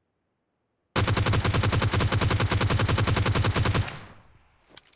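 A rifle fires a fast burst of rapid shots.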